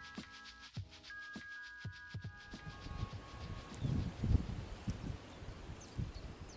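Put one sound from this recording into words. A river flows quietly past.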